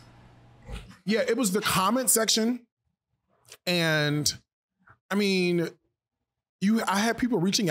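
A second man speaks calmly into a microphone.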